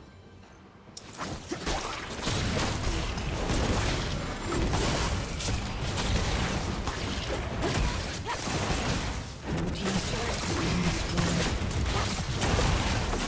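Magic blasts and spell effects crackle and burst in quick succession.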